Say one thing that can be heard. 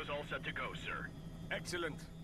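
A man speaks calmly over a headset radio.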